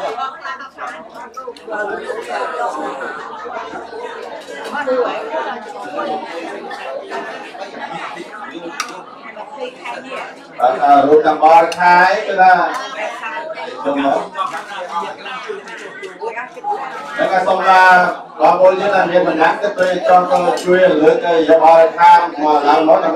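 A crowd of men and women murmurs and talks nearby.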